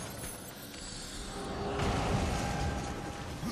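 A magical burst hums and crackles.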